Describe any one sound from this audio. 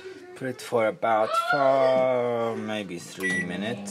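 Microwave buttons beep as they are pressed.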